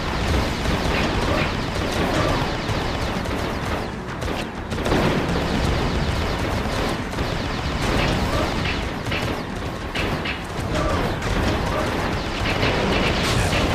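Energy shields crackle and whoosh.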